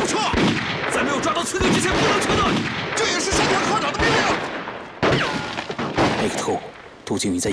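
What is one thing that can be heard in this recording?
A man speaks urgently and firmly.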